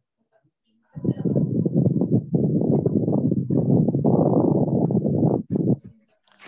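A woman speaks steadily over an online call.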